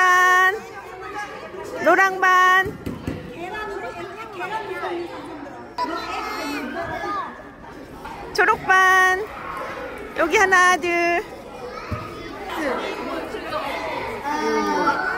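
Young children chatter and call out in a large echoing hall.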